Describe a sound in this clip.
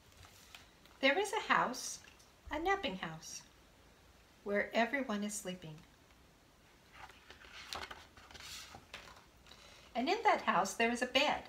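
A woman reads a story aloud calmly, close by.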